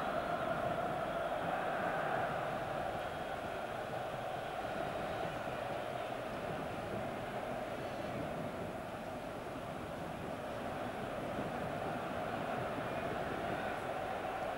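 A large stadium crowd roars and chants steadily, heard from a distance.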